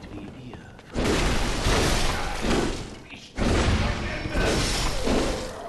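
A blade slashes into enemies with heavy, wet hits.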